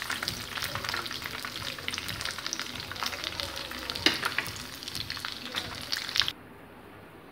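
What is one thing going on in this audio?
Oil sizzles and crackles as food fries in a pan.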